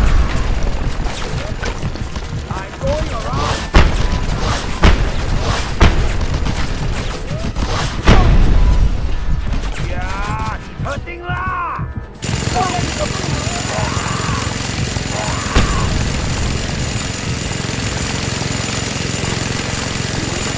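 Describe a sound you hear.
Gunfire rattles and booms in bursts.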